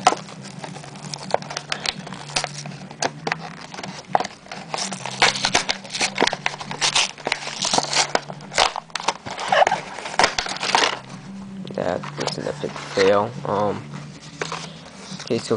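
Cardboard packaging scrapes and taps as it is pulled apart.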